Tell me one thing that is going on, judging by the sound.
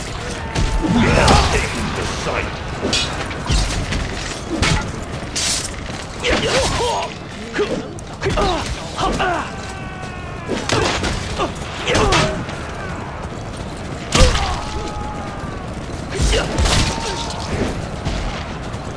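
Blades clash and strike in a fierce fight.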